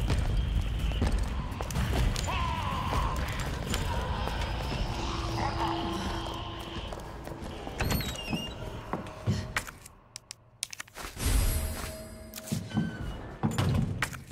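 Footsteps tap along a hard floor.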